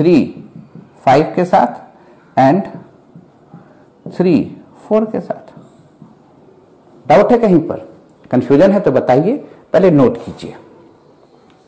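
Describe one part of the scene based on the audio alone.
A man speaks calmly and clearly nearby, explaining in short phrases with pauses.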